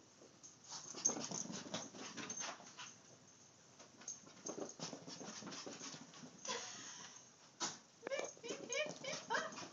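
A small dog scampers across a carpeted floor.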